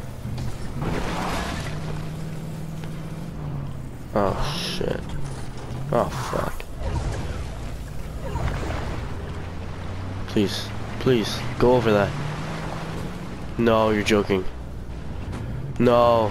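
A video game car splashes through water.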